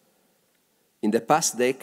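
An older man speaks into a microphone.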